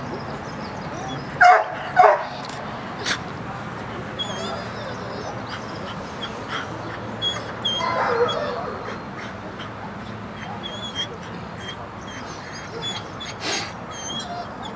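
A dog pants softly.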